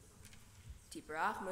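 A young woman begins speaking through a microphone.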